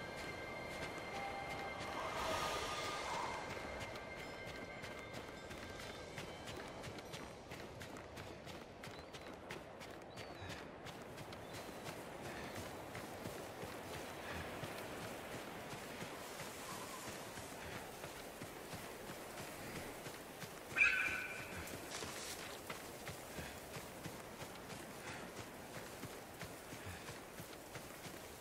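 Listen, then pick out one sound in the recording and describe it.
Footsteps run quickly over sand and grass.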